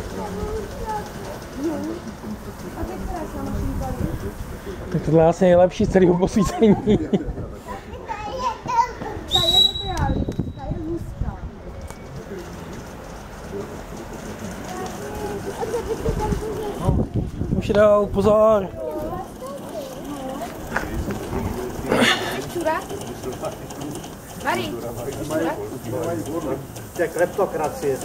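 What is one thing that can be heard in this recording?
Men and women talk at a distance outdoors.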